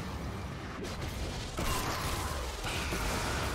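Magic spell effects whoosh and crackle during a fight.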